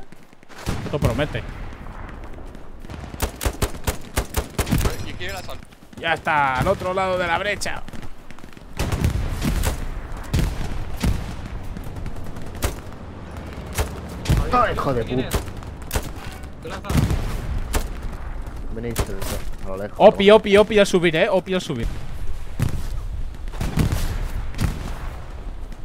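Rifle shots crack repeatedly.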